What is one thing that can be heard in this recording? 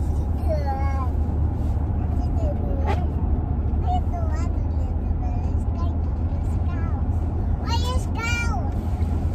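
A vehicle engine hums low and steadily.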